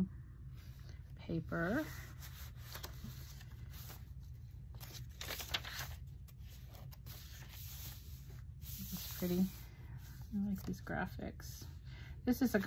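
Paper pages rustle and flip as they are turned by hand.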